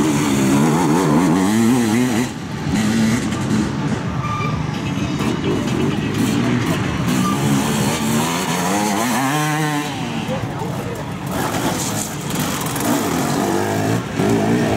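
Dirt bike engines rev and roar loudly as riders pass close by.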